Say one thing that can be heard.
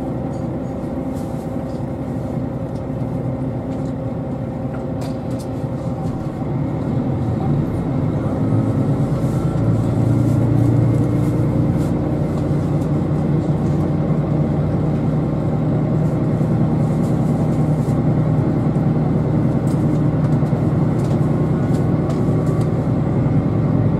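A train hums low inside the carriage, growing louder and rumbling as it pulls away and gathers speed.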